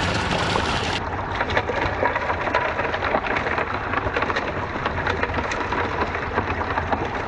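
Water rushes and bubbles over a small sluice close by.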